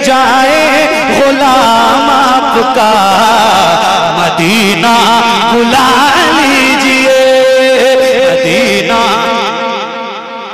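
A man sings loudly into a microphone through loudspeakers.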